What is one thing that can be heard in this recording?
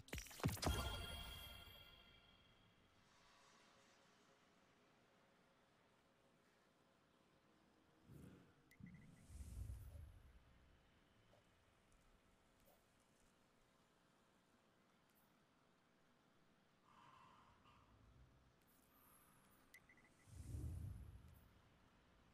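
Soft menu whooshes and clicks sound as panels open and close.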